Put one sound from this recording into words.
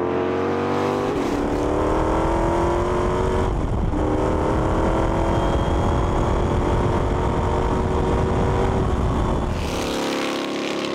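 Wind rushes loudly past an open car.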